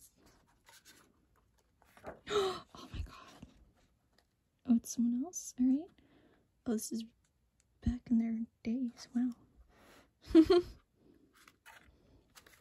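Paper pages rustle and flap as a book's pages are turned.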